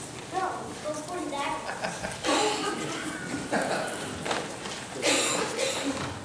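Children chatter and giggle nearby.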